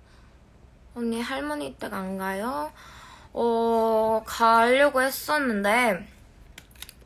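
A young woman sings close by in short phrases.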